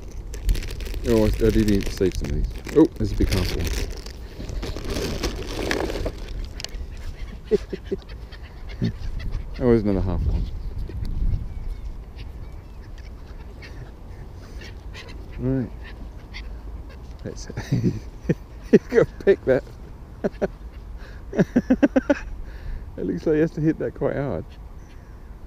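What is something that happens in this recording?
Gulls call overhead.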